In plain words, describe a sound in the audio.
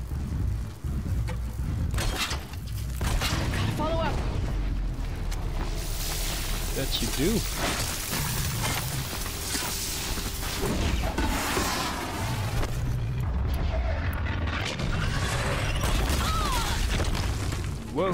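A large metal machine creature stomps and clanks nearby.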